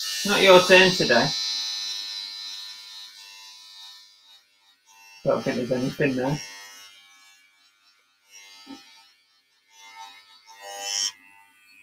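Scissors snip at hair close by.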